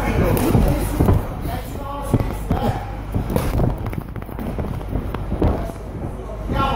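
Boxers' feet shuffle and squeak on a canvas ring floor.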